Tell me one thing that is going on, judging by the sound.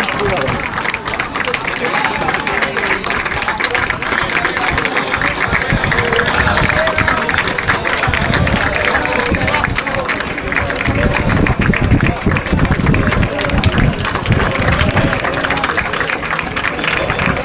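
Young men clap their hands.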